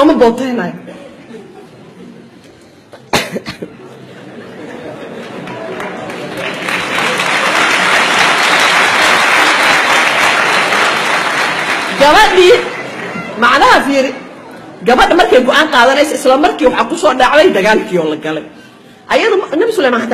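A middle-aged woman speaks with animation through a microphone.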